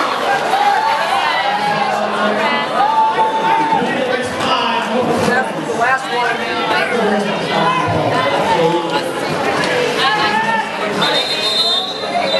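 Roller skate wheels roll and scrape on a concrete floor.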